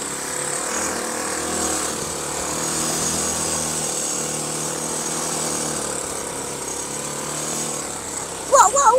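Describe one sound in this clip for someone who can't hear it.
A small quad bike engine hums steadily as it drives over dirt.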